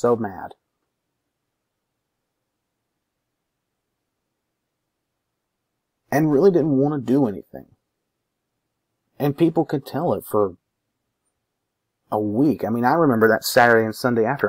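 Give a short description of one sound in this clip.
A young man talks calmly into a microphone, close by, with pauses.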